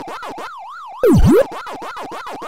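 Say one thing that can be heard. A loud electronic tone swoops down and back up once.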